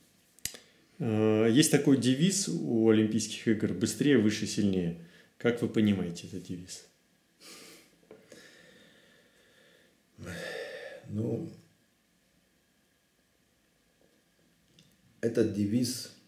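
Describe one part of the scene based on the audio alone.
A middle-aged man speaks calmly and close by, pausing now and then.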